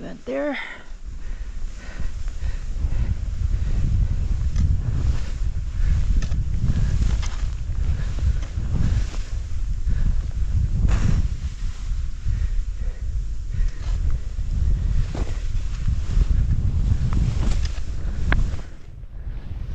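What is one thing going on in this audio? Wind rushes loudly past as a skier speeds downhill.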